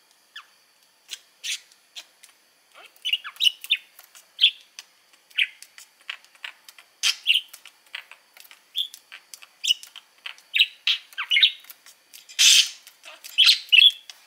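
A budgerigar chirps and chatters in short, high bursts close by.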